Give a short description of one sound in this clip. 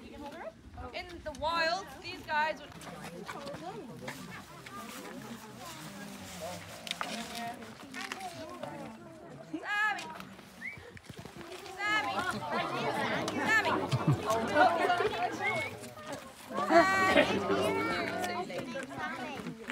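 A crowd of adults and children chatters nearby, outdoors.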